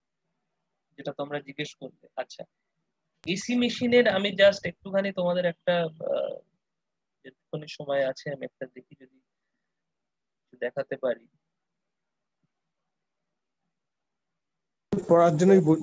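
A man speaks through an online call, in short bursts with pauses.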